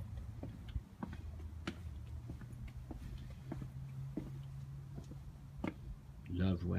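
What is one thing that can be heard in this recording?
Footsteps scuff slowly along a concrete path outdoors.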